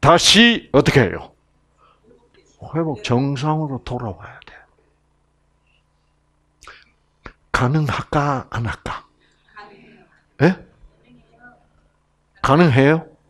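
An elderly man lectures with animation, heard through a microphone, with short pauses.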